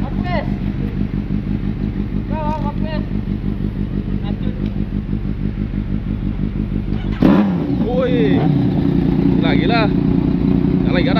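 A motorcycle engine idles nearby with a steady throbbing rumble.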